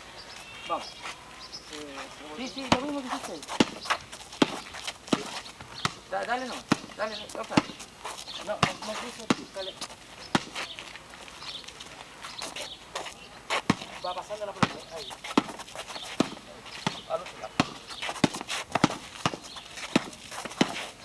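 A basketball bounces repeatedly on hard pavement outdoors.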